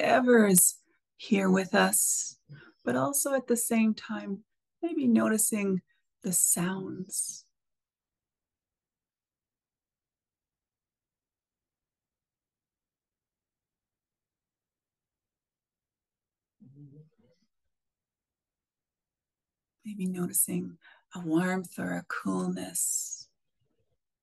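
A middle-aged woman speaks calmly and softly over an online call.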